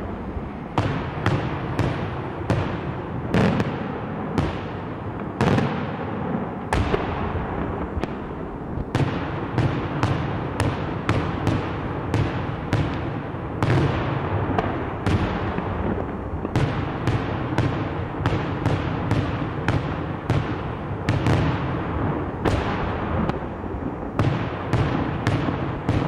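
Fireworks burst in the sky with sharp bangs, one after another.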